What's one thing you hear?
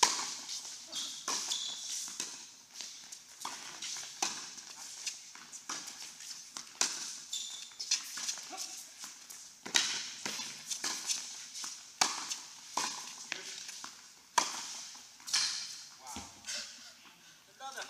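Tennis balls pop off rackets in a large echoing hall.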